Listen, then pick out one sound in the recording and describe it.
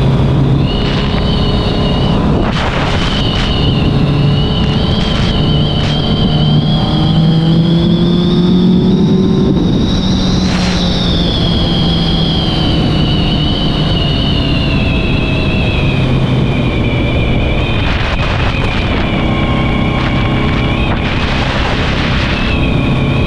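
A motorcycle engine roars at high speed, its pitch rising and falling slowly.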